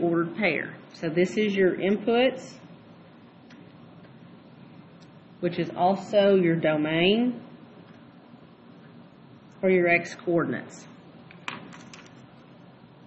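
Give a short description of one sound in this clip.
A marker squeaks as it writes on paper.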